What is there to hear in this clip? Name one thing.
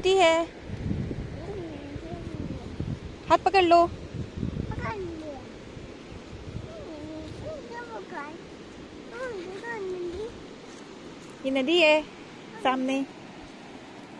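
A young child shouts and babbles close by.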